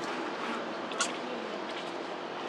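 A monkey gives a short, soft call close by.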